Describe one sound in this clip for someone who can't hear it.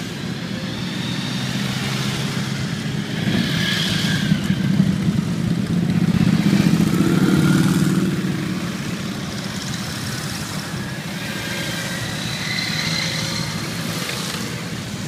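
Many motorcycle engines rumble steadily as a long column rides past.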